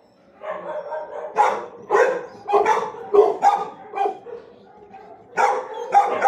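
A dog laps water from a metal bucket.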